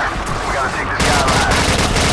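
A rifle fires loud shots in quick succession.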